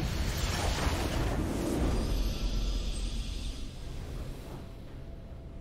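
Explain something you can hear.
A triumphant game fanfare swells loudly and then fades away.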